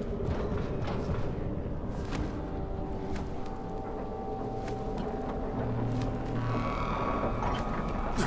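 Hands knock on a metal ladder while climbing.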